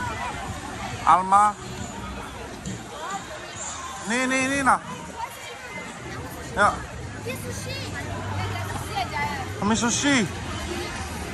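Young women shout excitedly close by.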